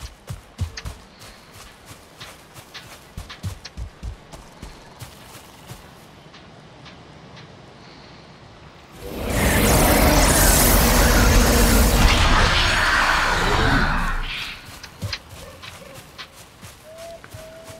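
Footsteps thud softly on grass.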